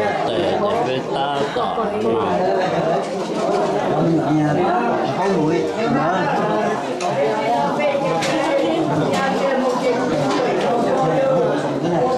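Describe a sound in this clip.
A crowd of men and women chatter loudly all around in a room.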